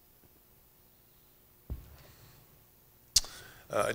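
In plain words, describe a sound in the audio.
A glass is set down on a table with a soft knock.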